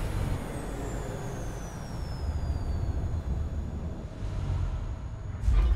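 A large machine's engines hum as it flies.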